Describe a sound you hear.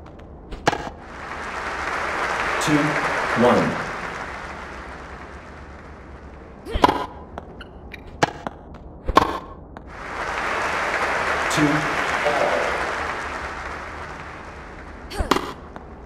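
A crowd cheers and applauds in a swell.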